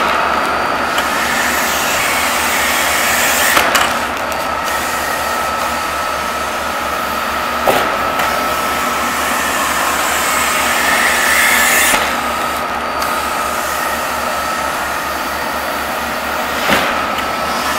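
Paper sacks thump down onto a stack.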